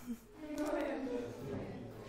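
A teenage boy speaks briefly.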